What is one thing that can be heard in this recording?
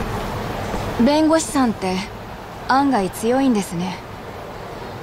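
A young woman speaks quietly and hesitantly, close by.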